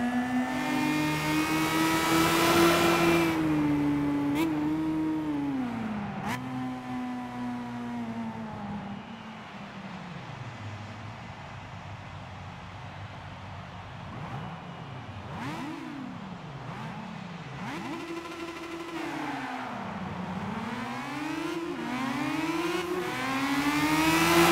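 A racing car engine roars, revving up and down as gears shift.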